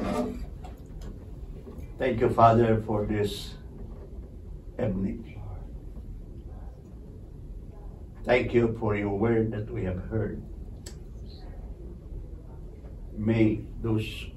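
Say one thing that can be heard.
A man speaks calmly in a low voice nearby, with pauses.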